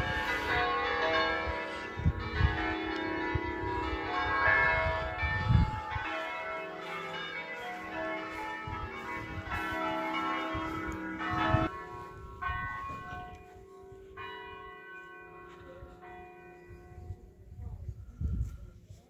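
Church bells ring out loudly in full peal, then slowly fade.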